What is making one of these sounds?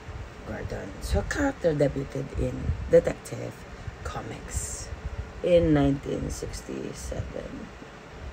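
A woman speaks casually and close by.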